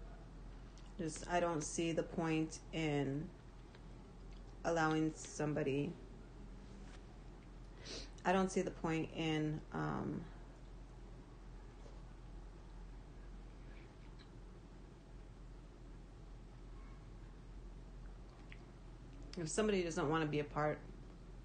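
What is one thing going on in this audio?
A young woman talks calmly close to the microphone.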